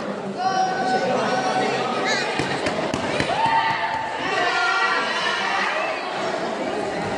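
A crowd shouts and cheers loudly in a large echoing hall.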